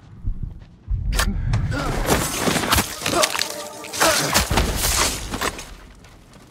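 A blade slashes into a man with a heavy thud.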